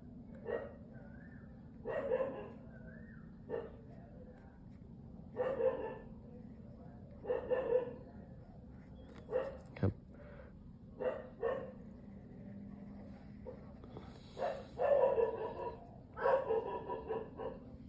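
A pen nib scratches lightly on paper.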